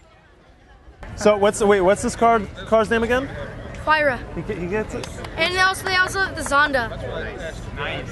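A boy speaks excitedly close by, outdoors.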